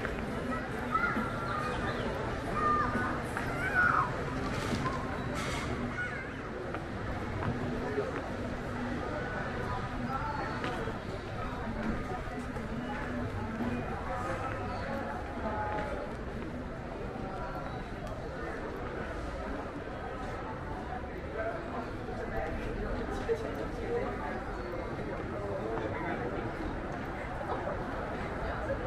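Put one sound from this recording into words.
Men and women talk quietly nearby in a steady murmur.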